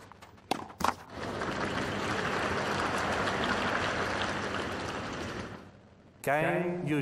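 A crowd applauds loudly, then the applause fades.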